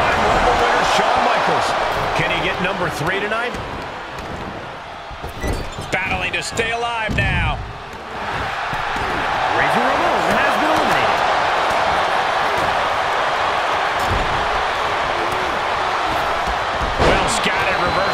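Wrestlers slam onto the ring mat with heavy thuds.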